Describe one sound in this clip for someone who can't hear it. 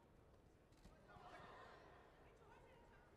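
A crowd cheers briefly as a fighter is thrown to the mat.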